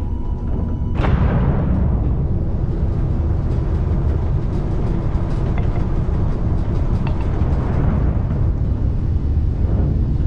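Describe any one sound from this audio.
A spaceship engine surges into a louder roar as it speeds up.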